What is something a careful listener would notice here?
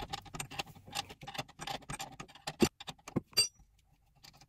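A wrench clicks and ratchets on a bolt.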